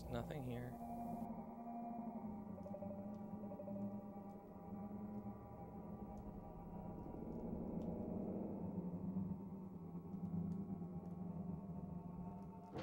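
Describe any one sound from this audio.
Low, droning electronic game music plays steadily.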